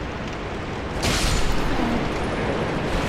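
A heavy sword strikes an armoured foe with a loud crash.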